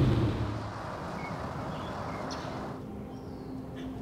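Wind rustles through palm leaves.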